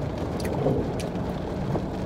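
A young woman bites and crunches on a crispy snack.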